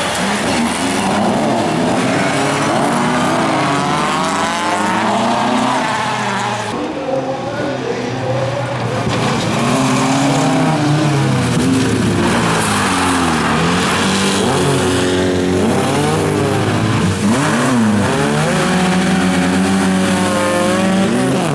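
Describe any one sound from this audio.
Racing car engines roar and rev throughout.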